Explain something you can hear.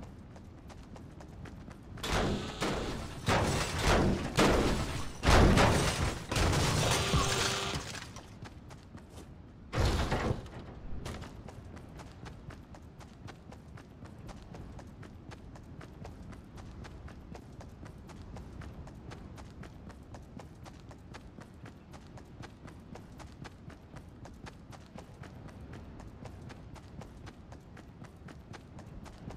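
Quick footsteps patter steadily on hard ground and sand.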